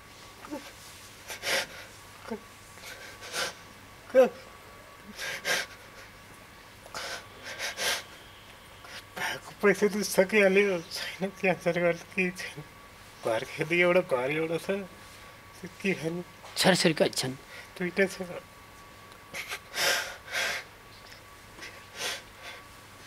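A man sobs and sniffles into a microphone.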